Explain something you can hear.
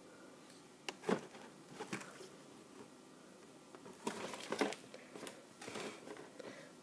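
A cardboard box scrapes and knocks against a table.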